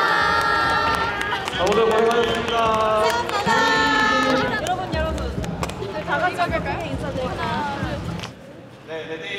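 Young women cheer and laugh excitedly close by.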